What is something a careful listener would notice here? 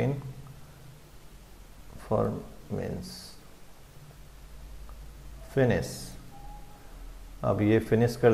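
A man speaks calmly into a close microphone, in short phrases.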